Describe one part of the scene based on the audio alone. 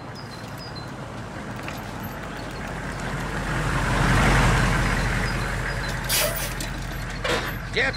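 A truck engine rumbles as it drives past.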